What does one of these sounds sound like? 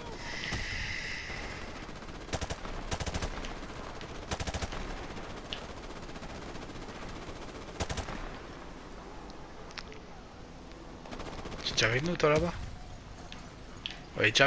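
Rapid gunfire crackles in bursts nearby.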